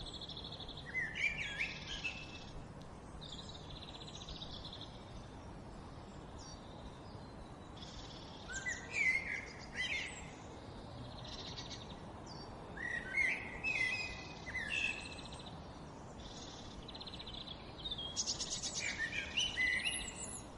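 Jackdaws call with short, sharp chirps close by.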